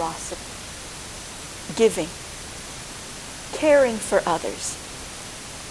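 A middle-aged woman speaks calmly into a close microphone, with pauses.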